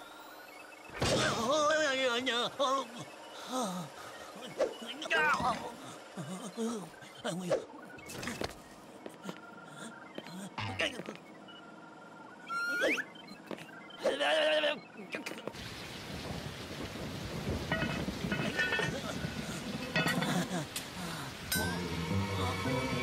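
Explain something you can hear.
A young man's cartoon voice speaks with animation, close by.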